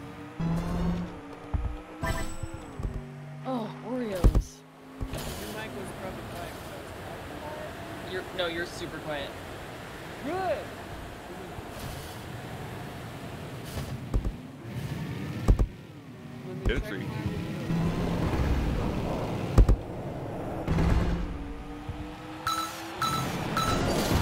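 Race car engines whoosh and roar in a video game.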